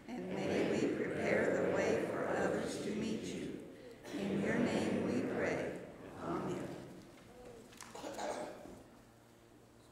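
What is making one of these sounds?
A group of men and women read aloud together in a large echoing hall.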